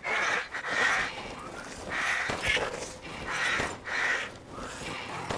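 Crows caw loudly in harsh bursts.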